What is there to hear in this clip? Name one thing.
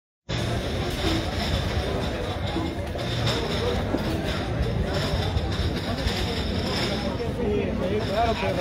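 A crowd of men and women talks and murmurs close by, outdoors.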